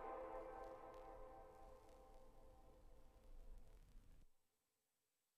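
Electronic music plays from a DJ's mixing decks and stops abruptly.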